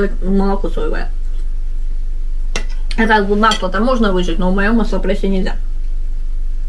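A woman talks close by in a relaxed, cheerful voice.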